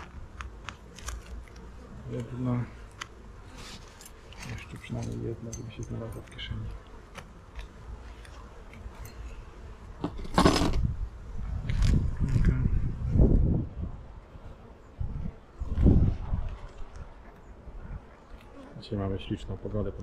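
A wooden board knocks and scrapes against a wooden hive frame.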